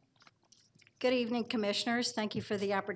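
A middle-aged woman speaks calmly into a microphone.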